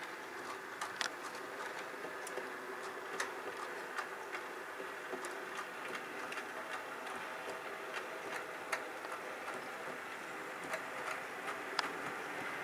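A small model train hums steadily as it rolls along the track.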